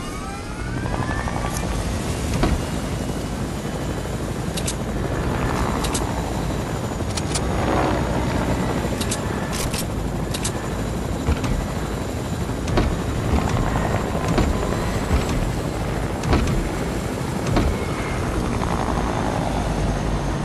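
A helicopter's rotor roars loudly and steadily close by.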